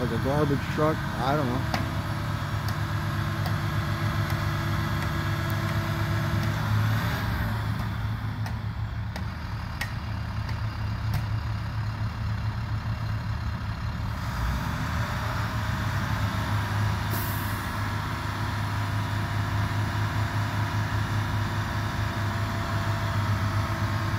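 A truck's vacuum engine roars steadily nearby.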